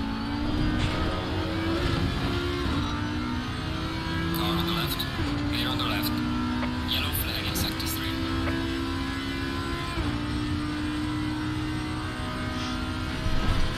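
A racing car engine roars loudly, shifting up through the gears.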